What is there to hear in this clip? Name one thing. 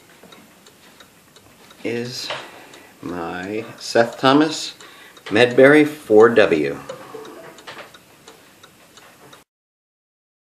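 A clock ticks softly and steadily.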